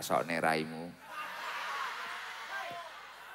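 A crowd laughs and cheers in a large space.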